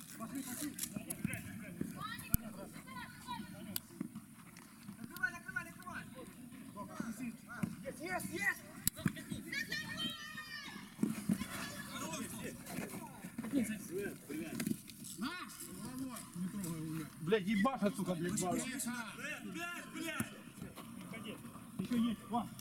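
Adult men shout and call out to each other outdoors across a playing field.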